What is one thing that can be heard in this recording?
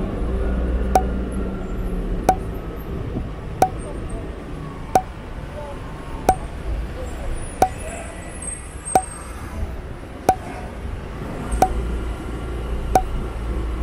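A pedestrian crossing signal beeps at an even, slow pace.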